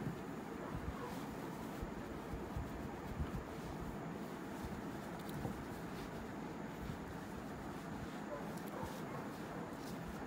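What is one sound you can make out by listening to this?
A towel rubs softly against skin.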